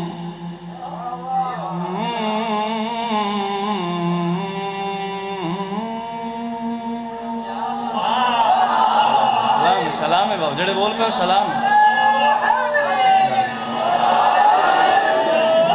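A young man sings a mournful chant loudly through a microphone.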